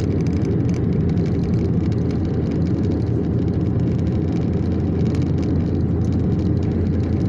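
Road noise rumbles from inside a car driving at highway speed.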